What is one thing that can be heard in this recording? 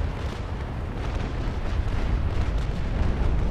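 Cannons boom in the distance with a deep rumble.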